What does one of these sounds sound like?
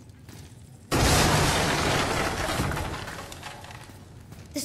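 Wooden planks smash apart with a loud crash.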